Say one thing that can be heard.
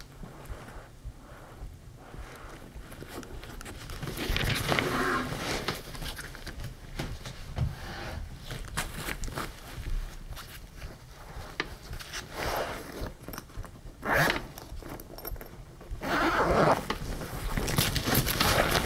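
Fabric rustles and scrapes as hands handle a bag.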